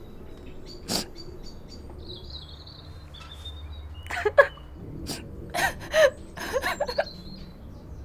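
A middle-aged woman speaks briefly.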